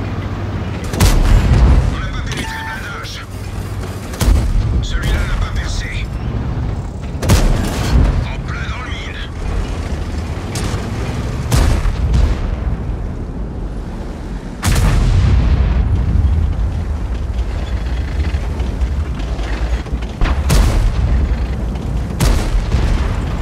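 Tank cannons fire with loud booms, again and again.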